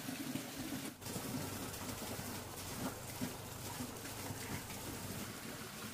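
Ducks peck and scoop at dry feed in a plastic tub.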